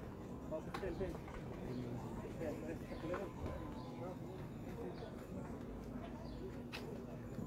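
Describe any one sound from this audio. Footsteps shuffle on a dirt street.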